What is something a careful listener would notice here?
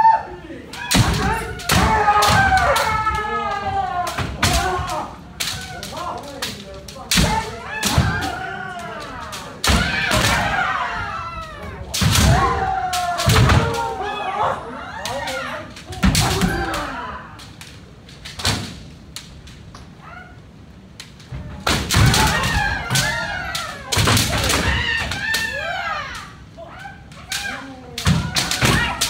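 Many fencers shout loud drawn-out battle cries that echo through a large hall.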